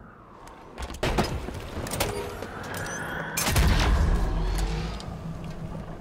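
Gunshots crack in quick, loud bursts.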